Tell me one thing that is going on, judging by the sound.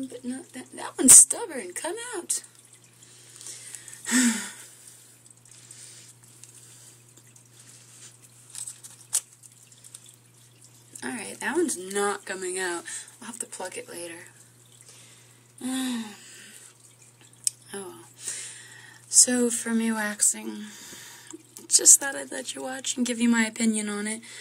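A young woman talks casually into a nearby microphone, in short bursts with pauses.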